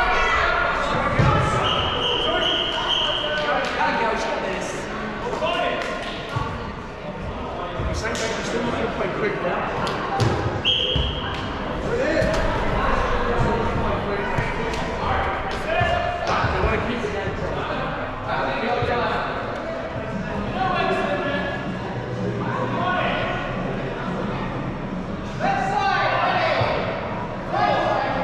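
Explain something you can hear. Shoes squeak on the court.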